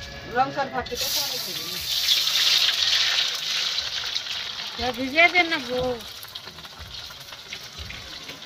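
Hot oil sizzles loudly in a pan, then slowly fades.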